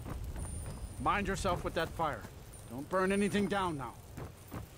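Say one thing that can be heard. A man speaks gruffly and warns, close by.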